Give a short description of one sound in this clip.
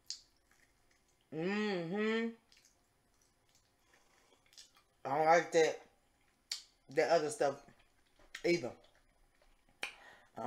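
A young woman chews and smacks her lips loudly.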